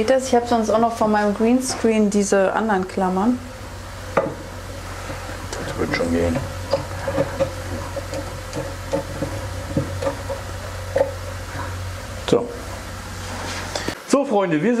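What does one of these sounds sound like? Aquarium equipment hums steadily.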